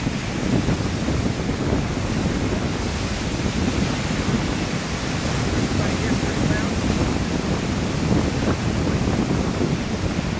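Waves break on a shore nearby.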